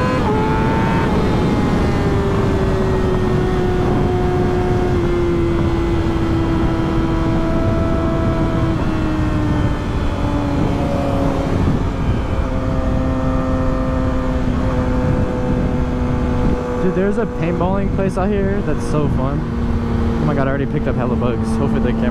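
A motorcycle engine hums steadily at speed, its pitch slowly falling.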